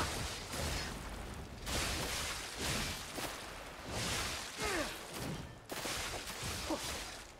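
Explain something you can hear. A heavy blade whooshes through the air in repeated swings.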